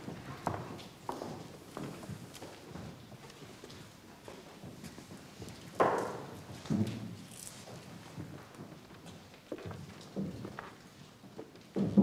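Men and women murmur quietly in a gathered crowd.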